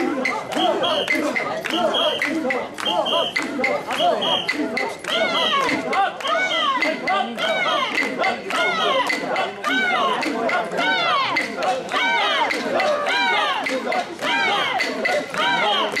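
A crowd of men chant loudly and rhythmically close by.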